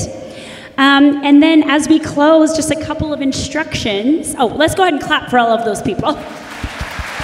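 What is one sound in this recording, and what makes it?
A woman speaks through a loudspeaker in a large echoing hall.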